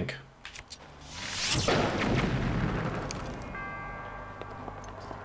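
A fiery explosion bursts with a loud roar and slowly fades.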